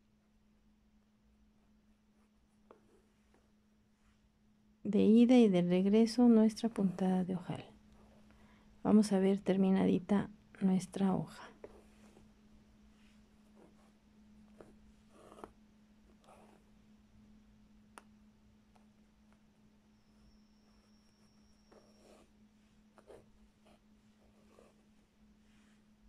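A needle and thread pull softly through taut cloth.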